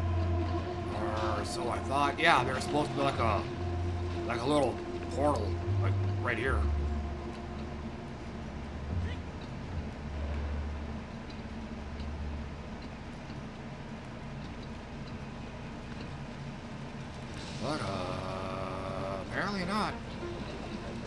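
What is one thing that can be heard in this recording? A man talks casually close to a microphone.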